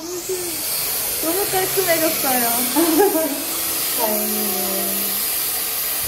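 A young woman talks close by over a hair dryer.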